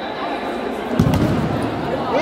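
A ball thumps as a player kicks it.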